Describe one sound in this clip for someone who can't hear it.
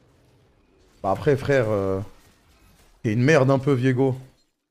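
A young man speaks loudly and with animation into a close microphone.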